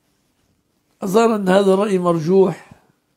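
An elderly man speaks calmly and slowly into a microphone, close by.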